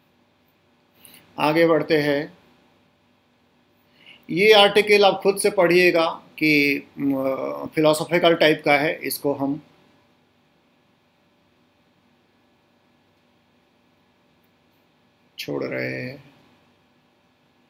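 A young man speaks calmly and close to a microphone, explaining.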